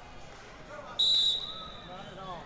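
A referee blows a short whistle blast.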